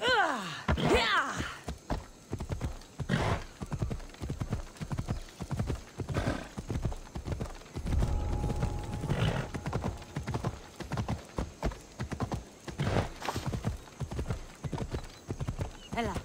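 Horse hooves pound steadily on a dirt path.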